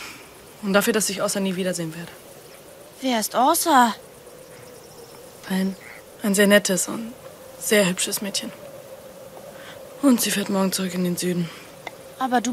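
A boy talks calmly and softly nearby.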